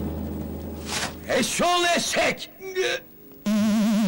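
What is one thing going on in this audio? A man shouts angrily nearby.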